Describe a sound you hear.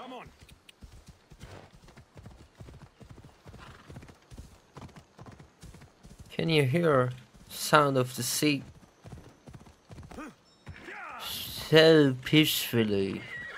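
Horse hooves thud at a steady gallop.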